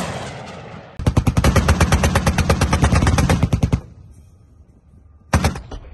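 An automatic cannon fires loud, rapid bursts close by.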